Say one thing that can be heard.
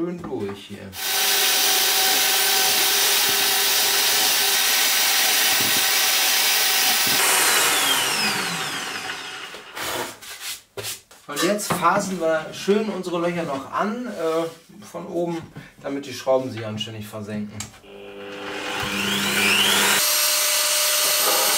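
A drill press whirs steadily as it bores into wood.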